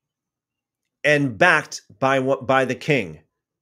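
A man reads aloud calmly into a microphone.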